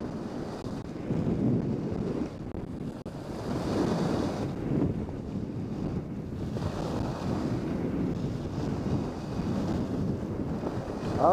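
Wind rushes loudly past, buffeting close by.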